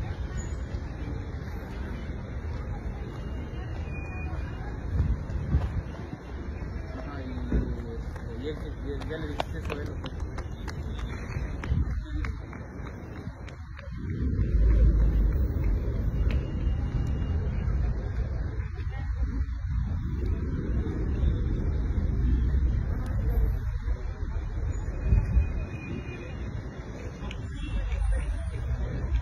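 A crowd murmurs at a distance outdoors.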